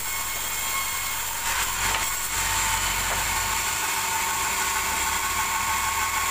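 A sawmill's band saw runs with a steady, high whine.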